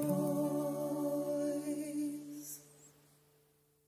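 Several women sing together in harmony, heard as through an online call.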